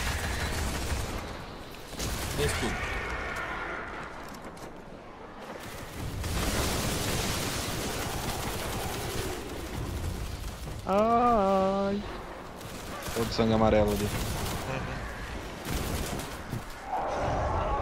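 Rifle fire crackles in rapid bursts.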